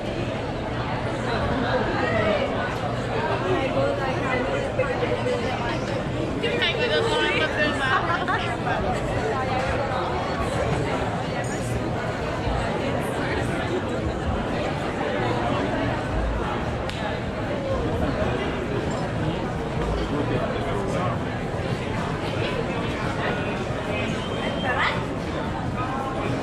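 A crowd of men and women chatter and laugh all around outdoors.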